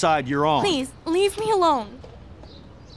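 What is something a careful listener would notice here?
A young woman pleads, upset.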